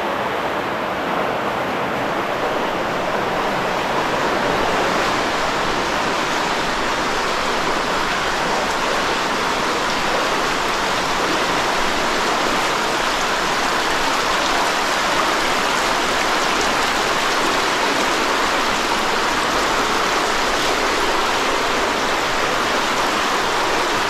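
A stream rushes and splashes steadily over rocks, echoing in an enclosed space.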